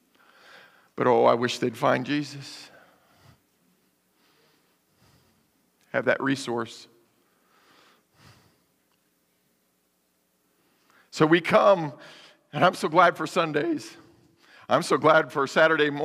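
A man speaks through a microphone in a large room, preaching with pauses.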